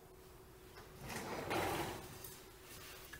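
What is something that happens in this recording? A plastic bin slides and scrapes across a wooden floor.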